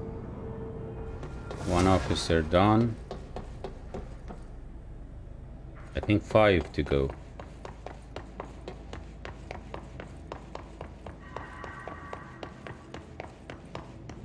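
Footsteps clatter on a metal walkway.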